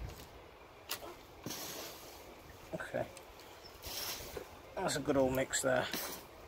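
Loose soil rustles and patters as it falls.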